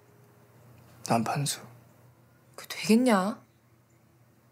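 A young woman speaks in a hesitant voice.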